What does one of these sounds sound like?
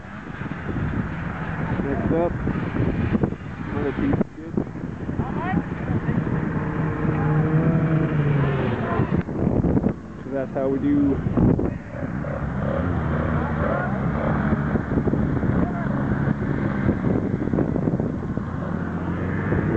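Snowmobile engines idle nearby.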